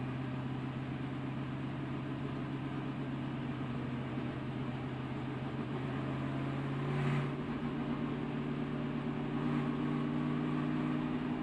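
A race car engine roars steadily at high speed, heard from on board.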